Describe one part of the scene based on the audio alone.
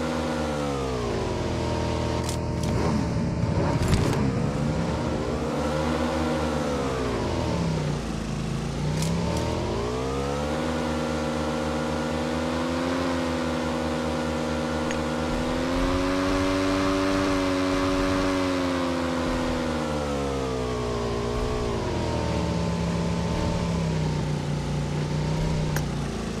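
A motorcycle engine revs up and down as the bike rides along.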